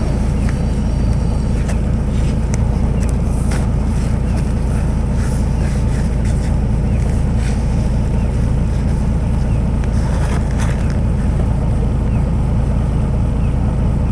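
Cars drive past on a street nearby.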